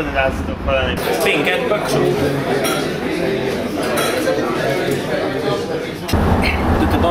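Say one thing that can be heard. A crowd chatters in a busy room.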